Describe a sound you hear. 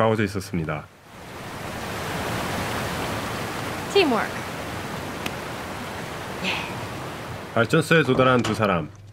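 Water rushes and churns steadily nearby.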